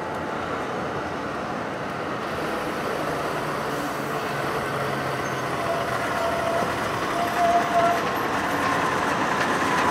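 A heavy truck engine rumbles as it approaches and grows louder.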